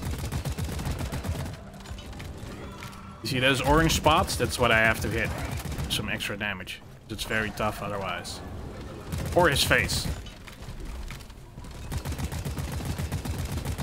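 A laser gun fires in rapid bursts.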